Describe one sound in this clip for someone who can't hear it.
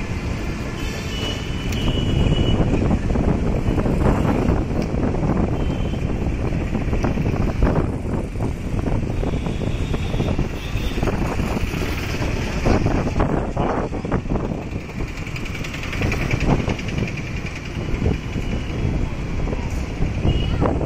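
A motor vehicle's engine rumbles steadily close by on a busy street.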